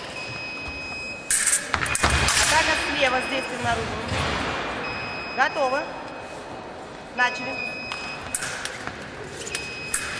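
Fencing blades clash and clink.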